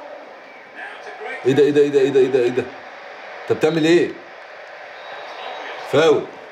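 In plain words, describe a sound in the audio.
A football video game plays on a television, with a crowd murmuring.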